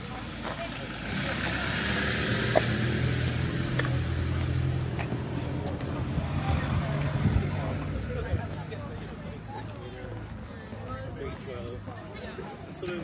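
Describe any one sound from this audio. A van engine idles nearby with a low rumble.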